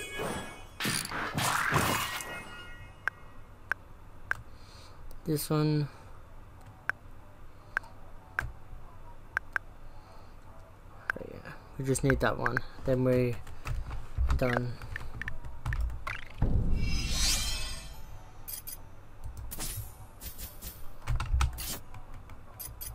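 Short game menu clicks tick as items are selected.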